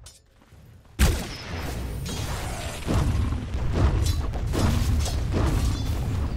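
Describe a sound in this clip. Weapons clash and spells crackle in a noisy fight.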